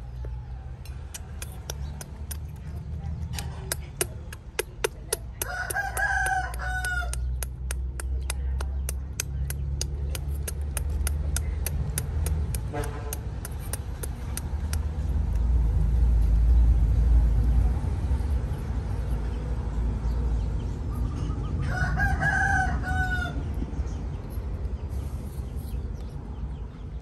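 A baby monkey chews food.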